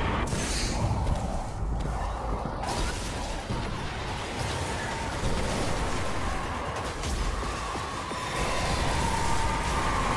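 Energy blasts crackle and boom nearby.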